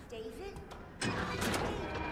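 A metal lever is pulled down with a heavy clunk.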